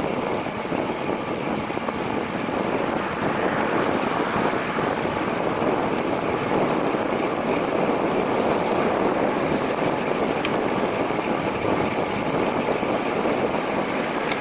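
Bicycle tyres hum steadily on smooth pavement.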